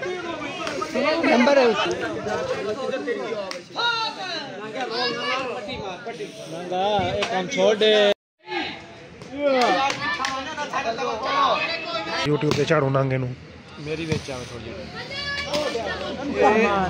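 Several young men talk and shout outdoors, close by.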